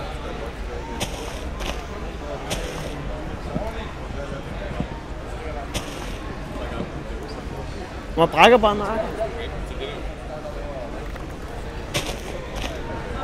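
Game leaves crunch in short bursts as blocks are broken.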